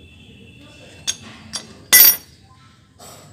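A metal wrench clatters onto a concrete floor.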